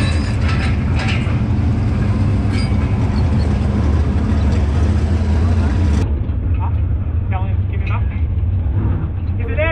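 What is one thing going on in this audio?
A race car engine idles with a steady low rumble nearby.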